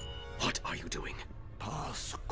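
A man asks a question in a low, menacing voice.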